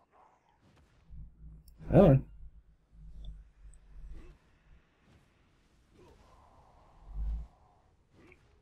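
A rushing magical dash effect whooshes.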